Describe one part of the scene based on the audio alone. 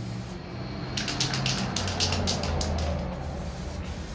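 A spray bottle hisses in quick squirts.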